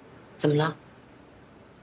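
A woman asks a short question quietly.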